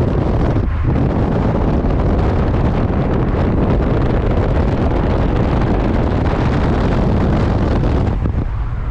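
Car engines roar loudly as cars race side by side at high speed.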